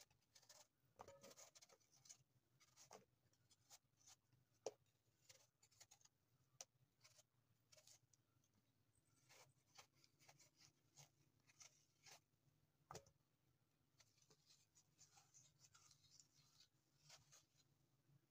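A knife scrapes and slices the peel off a firm fruit, close by.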